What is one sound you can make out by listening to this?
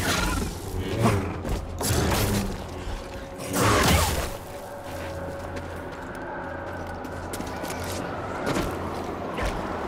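A lightsaber hums.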